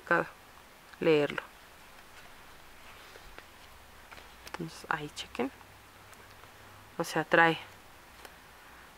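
Paper pages rustle as a book is leafed through.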